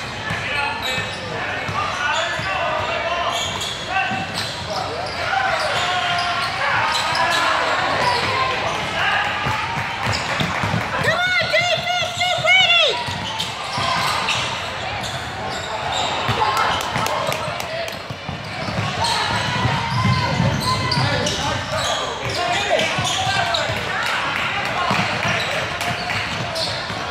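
Young players and spectators call out and chatter in a large echoing hall.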